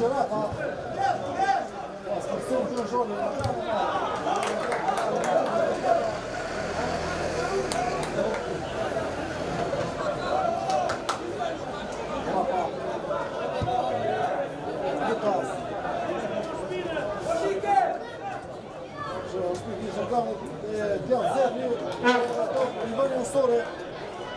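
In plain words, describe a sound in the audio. A crowd of spectators chatters and calls out across an open-air stadium.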